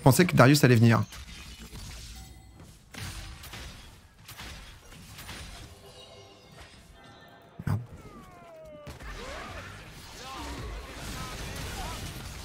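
Fighting sound effects clash and whoosh from a video game.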